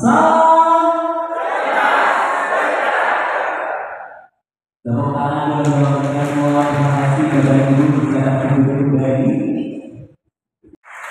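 A crowd sings together in a large echoing hall.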